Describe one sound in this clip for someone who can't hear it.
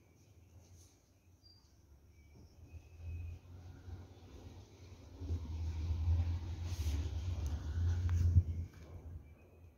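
Cloth rustles close by as it is handled.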